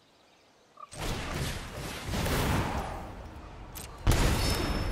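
A game sound effect whooshes and chimes as a card is played.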